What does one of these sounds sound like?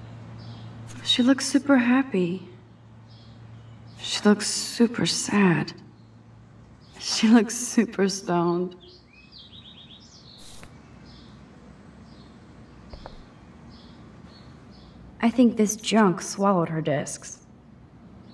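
A young woman speaks calmly and softly, close up.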